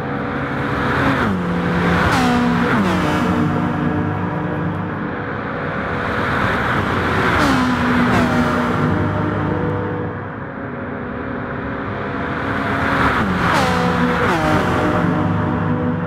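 Engines whine as gears shift down and back up.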